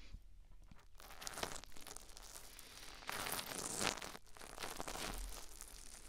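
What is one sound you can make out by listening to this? Fingers tap and scratch right against a microphone, loud and crackly.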